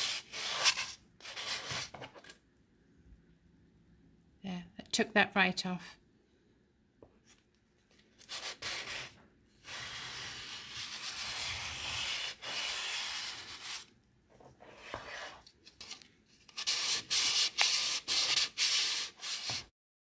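Sandpaper rubs in bursts against wood.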